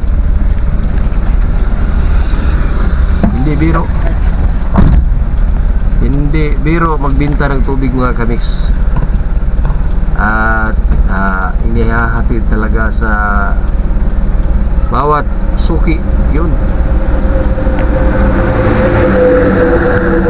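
A car engine rumbles steadily inside a moving vehicle.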